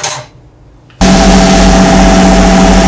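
A sandblaster hisses loudly as it blasts a small metal part.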